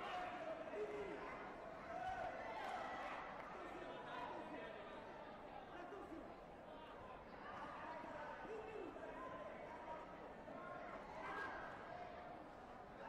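Many people talk and call out in a large echoing hall.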